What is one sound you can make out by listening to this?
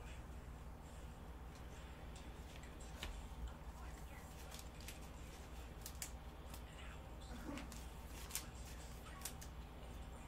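Trading cards tap and slide under gloved hands.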